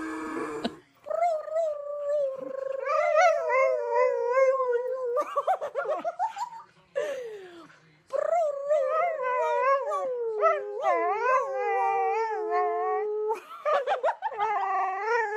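A woman howls along with a dog close by.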